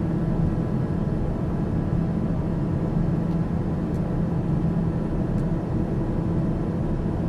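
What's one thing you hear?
A small aircraft's engine drones steadily in flight, heard from inside the cockpit.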